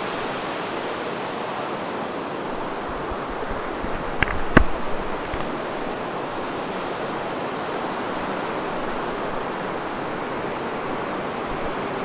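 Water rushes and churns steadily nearby.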